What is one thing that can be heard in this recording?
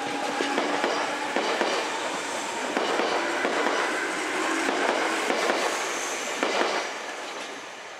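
A train rumbles past close by, its wheels clattering over the rails.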